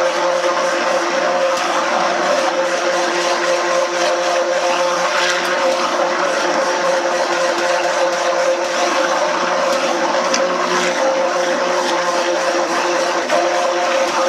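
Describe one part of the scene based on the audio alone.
Liquid churns and swishes in a pot.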